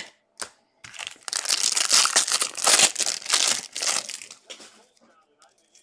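A foil wrapper crinkles and tears as a card pack is opened.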